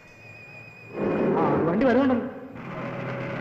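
A young man speaks loudly.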